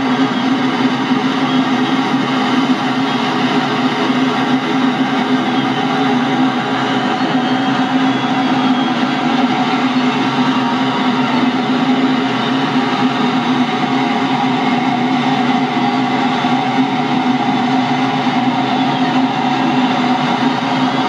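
Wind rushes steadily over a glider's canopy.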